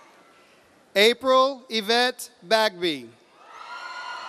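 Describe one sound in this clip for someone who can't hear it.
A man announces a name over a loudspeaker in a large echoing hall.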